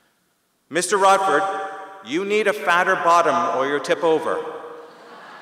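A middle-aged man speaks with animation through a microphone in a large echoing hall.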